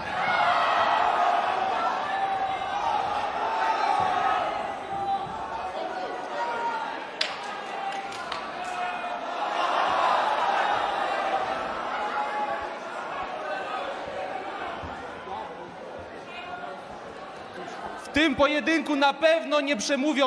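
A large crowd roars and shouts in a big echoing hall.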